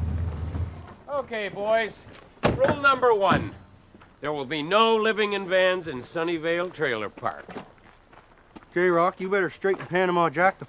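A man talks loudly and animatedly nearby.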